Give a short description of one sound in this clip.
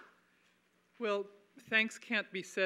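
A middle-aged woman speaks into a microphone in a large hall.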